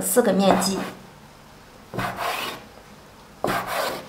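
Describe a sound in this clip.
A dough scraper chops down onto a wooden board.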